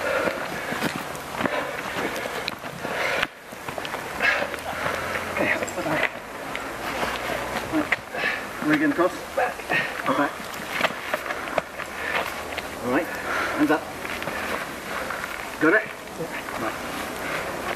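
Several adults talk and call out nearby, outdoors.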